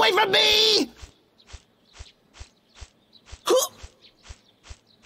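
Heavy footsteps thud slowly on a dirt path.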